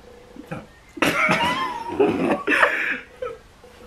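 Young men laugh together.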